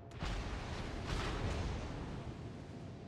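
Shells splash into the water.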